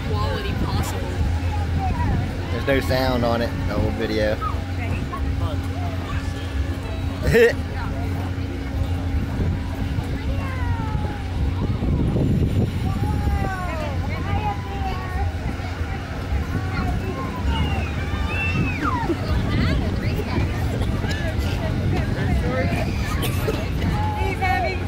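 Young children chatter and squeal nearby.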